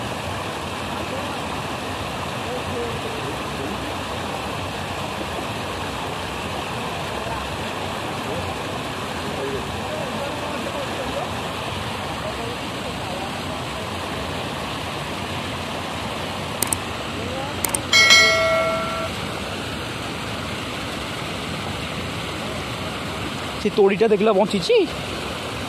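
Water rushes and churns steadily nearby.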